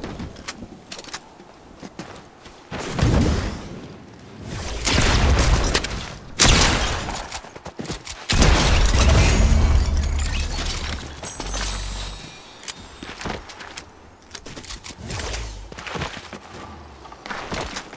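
Footsteps patter across grass.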